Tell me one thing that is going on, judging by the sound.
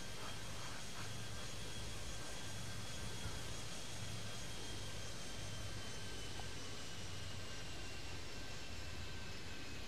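A jet airliner's engines whine as it rolls along a runway.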